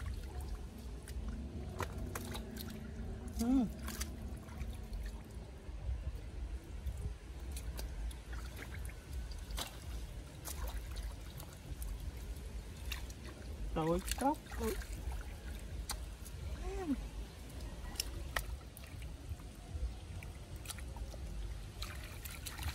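Hands squelch and scoop through wet mud.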